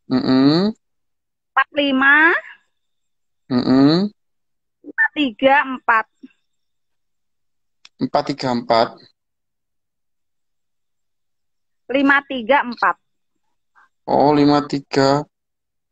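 A young woman speaks in short, cheerful bursts over an online call.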